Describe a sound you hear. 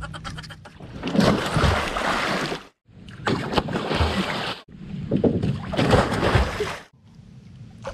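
Water splashes loudly in bursts.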